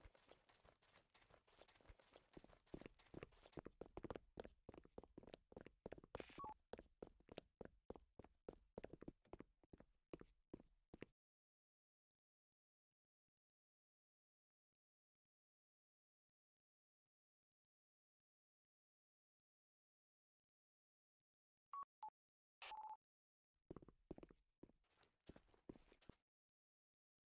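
Quick footsteps patter on pavement.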